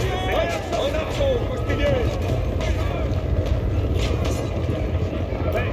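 A large army of soldiers marches with a steady, dense rumble of footsteps.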